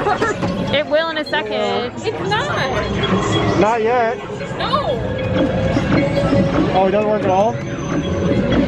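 Young people on a ride shriek and cheer excitedly nearby.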